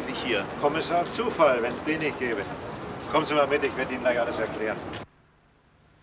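An older woman talks calmly nearby.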